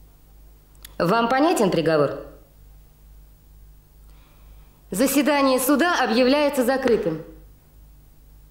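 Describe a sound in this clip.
A young man speaks quietly.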